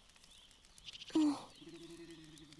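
A young woman asks a short, puzzled question.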